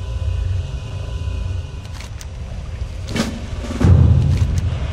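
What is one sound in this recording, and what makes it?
A bear's heavy paws thud softly on the ground.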